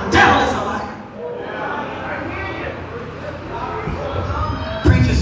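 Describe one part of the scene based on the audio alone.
A woman preaches with animation through a microphone and loudspeakers in a large echoing hall.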